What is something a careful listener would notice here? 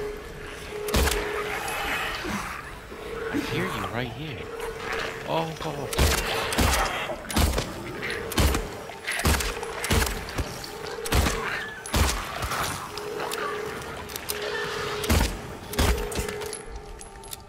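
Gunshots fire in loud, sharp bursts, ringing in a hard space.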